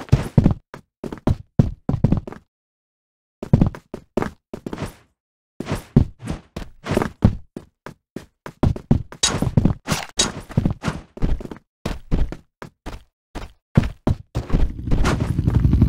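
Quick footsteps thud on a hard floor.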